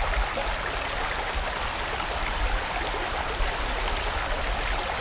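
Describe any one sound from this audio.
A stream rushes and gurgles over rocks.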